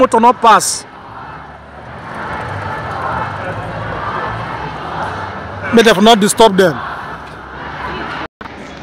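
A crowd of people murmurs on a busy street outdoors.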